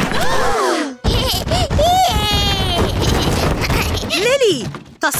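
A baby laughs loudly.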